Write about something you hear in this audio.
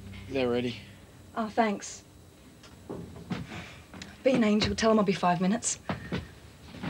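Women talk calmly nearby.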